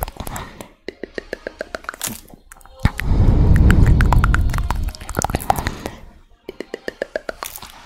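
A woman whispers softly right into a microphone.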